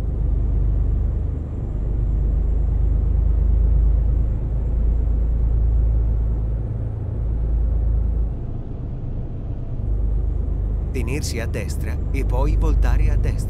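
A truck's diesel engine rumbles low and steady.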